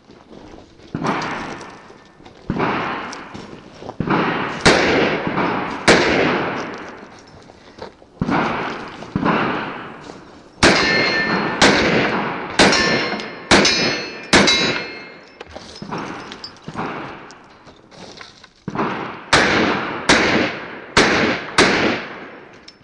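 Pistol shots crack nearby, echoing off the surroundings.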